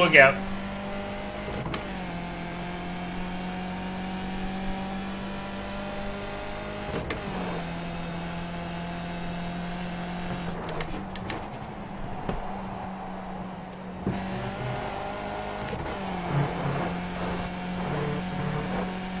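A racing car engine drones at high revs, dropping in pitch with each gear change.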